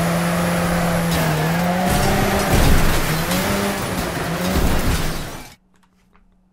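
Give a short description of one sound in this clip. A racing car engine roars loudly.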